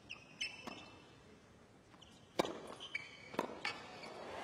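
A tennis ball is struck sharply by rackets in a rally.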